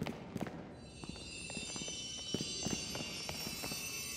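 A bright, glittering shimmer rings steadily.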